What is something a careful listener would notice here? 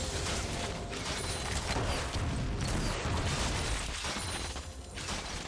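Game combat sound effects crackle and clash rapidly.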